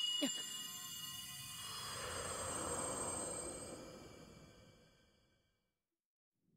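A bright magical shimmer rings out with glittering chimes and slowly fades away.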